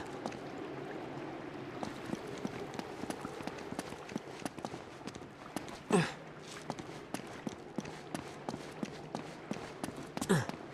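Footsteps patter quickly on stone and wooden boards.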